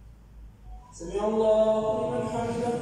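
A man chants in a long, drawn-out voice over a loudspeaker in a large echoing hall.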